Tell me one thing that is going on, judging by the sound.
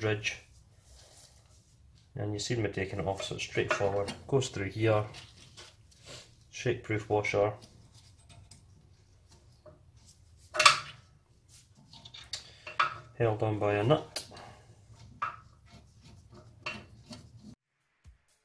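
Small metal fittings click and tap under a tool.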